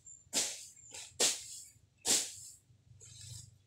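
Grass rustles and tears as it is pulled by hand.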